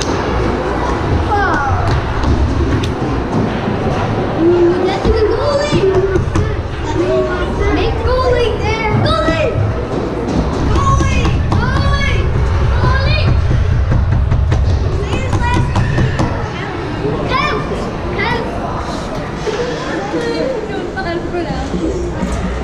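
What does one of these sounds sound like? Young players shout and call out across a large echoing ice rink.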